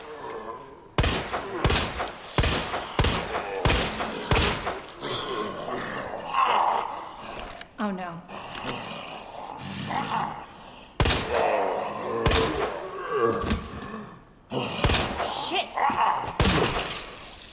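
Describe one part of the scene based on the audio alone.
A handgun fires repeatedly in sharp, echoing shots.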